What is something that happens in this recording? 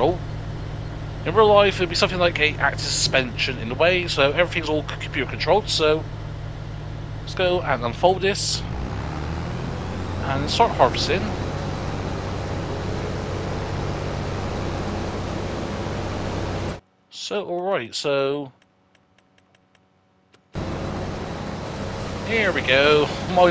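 A combine harvester's engine hums steadily.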